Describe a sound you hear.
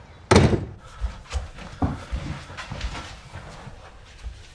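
Footsteps thud.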